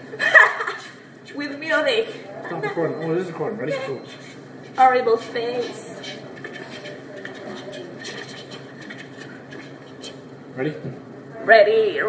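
A young woman talks and laughs excitedly close by.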